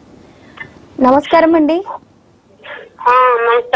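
A young woman speaks brightly into a microphone.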